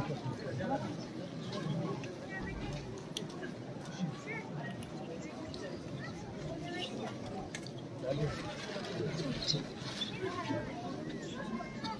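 Nearby men and women talk over one another.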